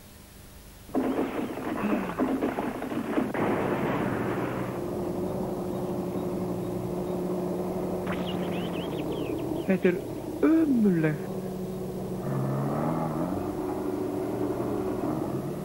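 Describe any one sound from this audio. A digging machine's engine rumbles and clanks loudly.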